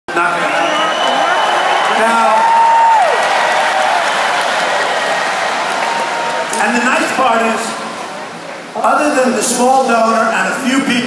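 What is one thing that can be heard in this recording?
A large crowd cheers and chatters in a big echoing hall.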